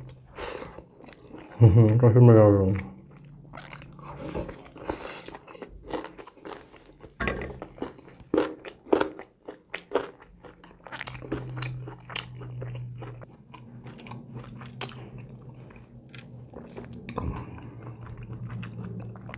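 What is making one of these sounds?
A man chews food noisily close to a microphone.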